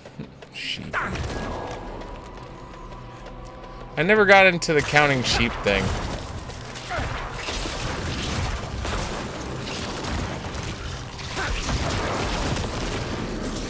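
Game combat effects clash and crackle.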